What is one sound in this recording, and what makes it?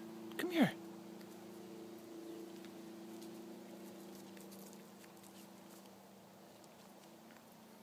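A deer's hooves crunch softly on dry mulch.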